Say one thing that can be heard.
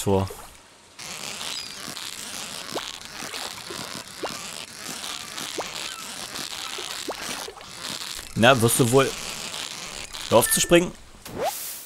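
A fishing reel whirs steadily.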